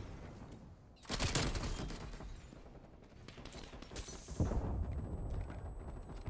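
An explosion booms with a deep roar.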